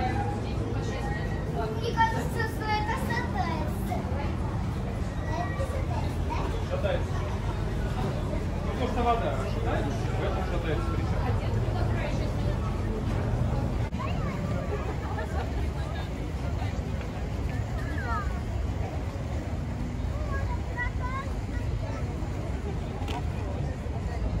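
Adults and children chatter nearby outdoors.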